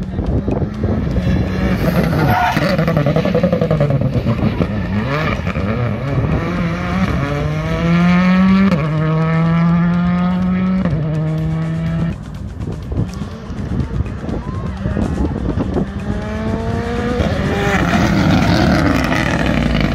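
A rally car engine roars close by, revving up hard through the gears as it speeds past.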